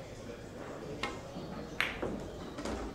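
Billiard balls clack together sharply.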